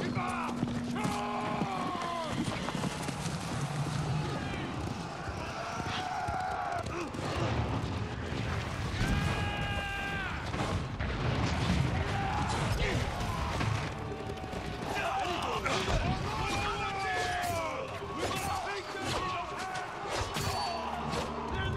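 Horses gallop with heavy thudding hooves.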